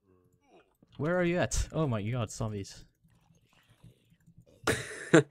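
A zombie groans low.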